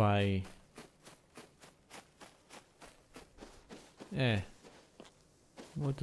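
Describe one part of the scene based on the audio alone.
Footsteps crunch steadily on soft sand.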